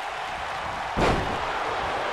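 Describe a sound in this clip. A heavy body thuds onto a wrestling mat.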